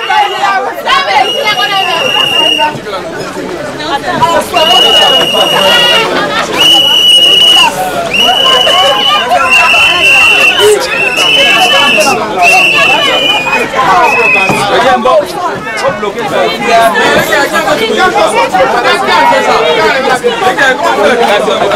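A crowd of men and women chatter and call out excitedly close by.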